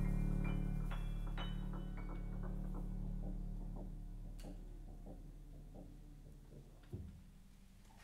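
A piano plays soft, fading notes.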